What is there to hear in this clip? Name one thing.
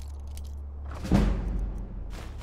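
A lock snaps open with a heavy clunk.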